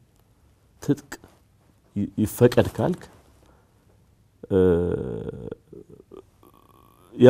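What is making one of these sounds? A middle-aged man speaks calmly and firmly into a close microphone, in short phrases with pauses.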